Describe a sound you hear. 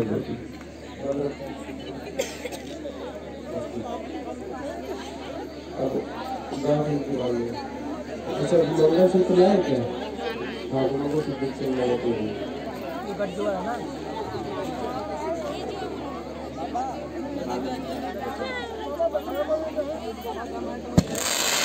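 A man chants into a microphone, heard over loudspeakers.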